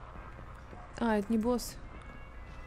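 A young woman exclaims briefly into a close microphone.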